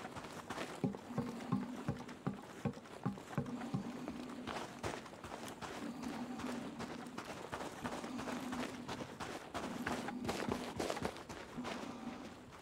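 Heavy footsteps crunch steadily on hard ground.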